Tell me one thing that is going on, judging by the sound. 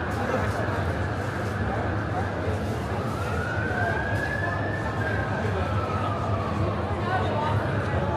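A crowd murmurs and chatters in a busy, bustling space.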